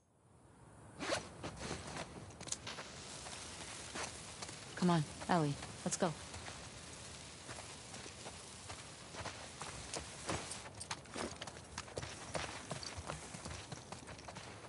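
Footsteps tread over grass and pavement.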